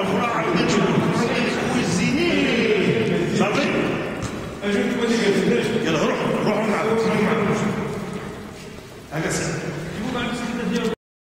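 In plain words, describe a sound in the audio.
A man chants in a drawn-out, melodic voice.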